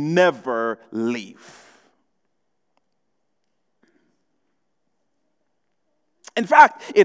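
A young man speaks with animation through a microphone, pausing in between.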